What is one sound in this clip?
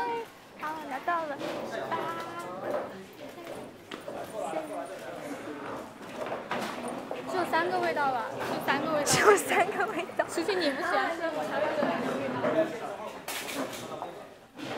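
Young women talk and chatter nearby.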